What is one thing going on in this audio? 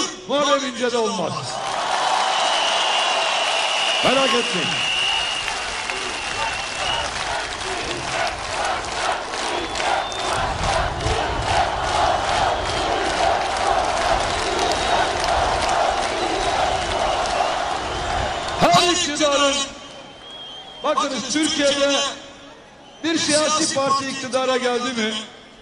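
A man shouts into a microphone over loudspeakers, with a strong echo.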